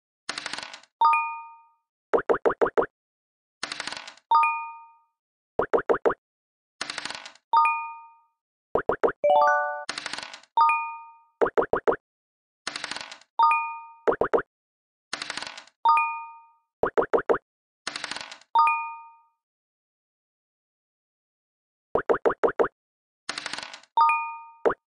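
A short chime rings after each dice roll.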